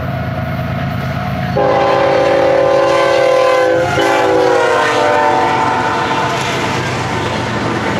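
Diesel locomotives rumble and roar close by.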